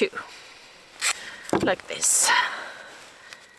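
Adhesive tape rips off a roll with a sticky tearing sound.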